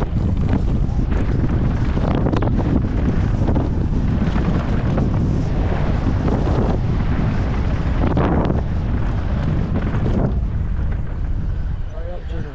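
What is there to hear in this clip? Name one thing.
Bike tyres rattle and crunch over a dirt trail.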